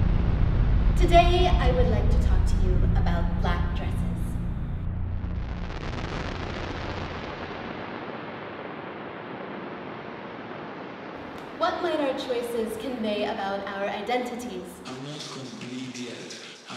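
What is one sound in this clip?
A young woman sings in an echoing hall.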